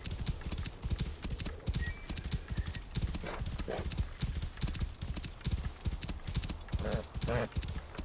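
A horse's hooves thud rapidly on sand at a gallop.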